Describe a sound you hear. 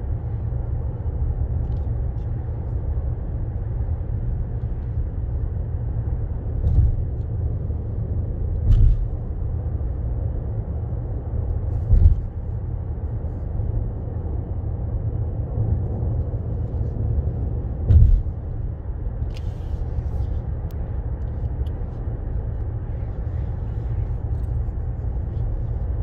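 A car's engine and tyres hum steadily from inside the cabin on a highway, with occasional dull thumps.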